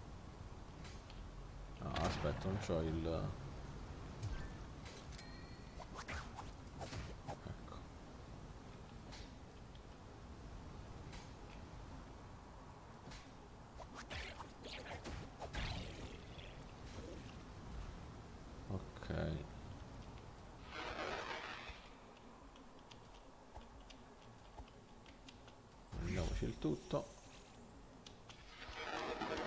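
Sword strikes and magic blasts crackle in short bursts.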